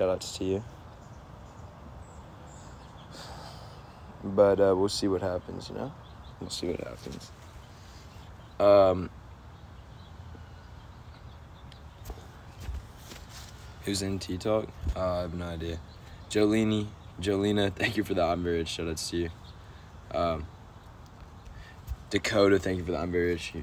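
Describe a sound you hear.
A young man talks casually and close up, in short bursts with pauses.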